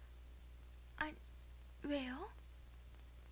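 A young girl speaks softly and hesitantly, close by.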